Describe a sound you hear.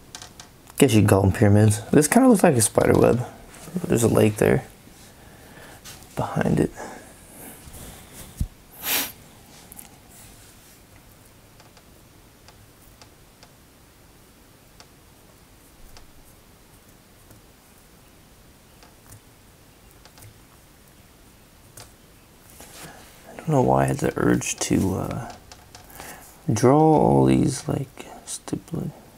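A felt-tip marker scratches and taps on paper.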